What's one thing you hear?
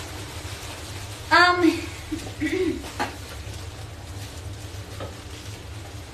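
A plastic sheet rustles and crinkles.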